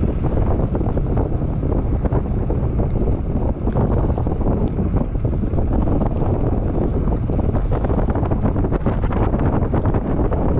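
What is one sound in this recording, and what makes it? Wind buffets loudly and roars steadily.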